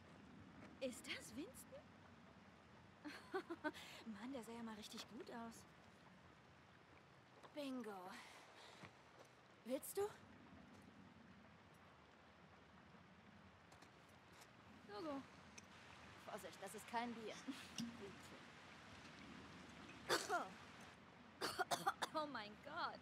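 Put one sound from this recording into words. A young woman speaks quietly and calmly, close by.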